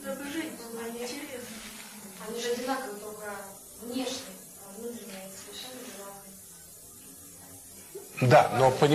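An elderly man speaks calmly and warmly, close by.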